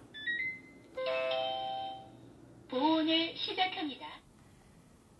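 A rice cooker plays a beeping electronic tune.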